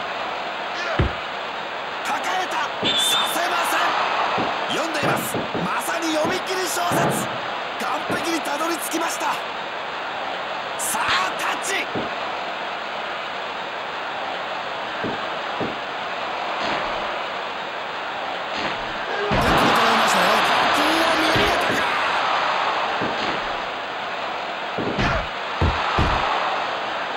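Heavy thuds of bodies hit a wrestling mat.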